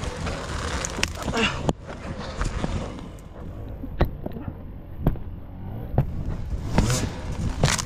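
A wooden log knocks and scrapes against rocks.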